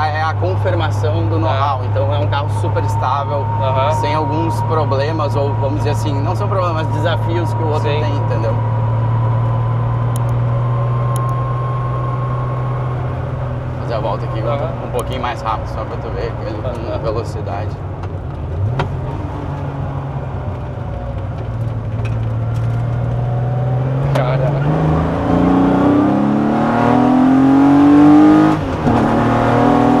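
A car engine hums steadily, then revs up as the car speeds up.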